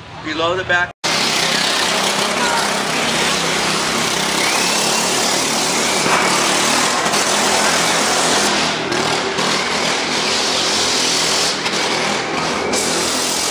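Motorcycles roar loudly.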